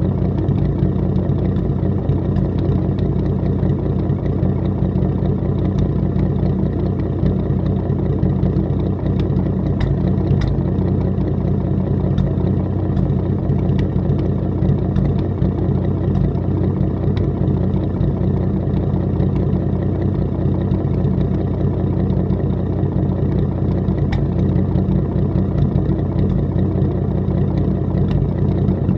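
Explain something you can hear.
A car engine idles close by with a low, steady rumble.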